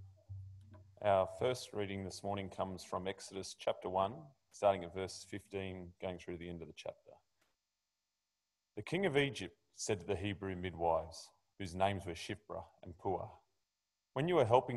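A young man speaks calmly into a microphone, reading out.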